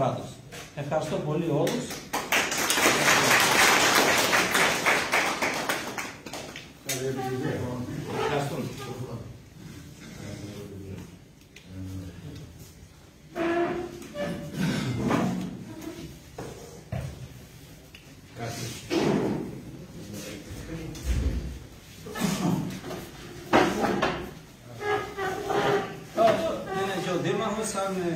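A middle-aged man speaks with animation to a group in a room.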